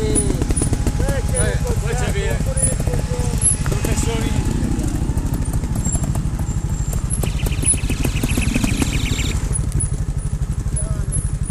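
Motorcycle engines rumble and pop close by, revving up and down.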